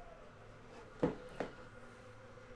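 A plastic card case clicks and knocks as it is handled.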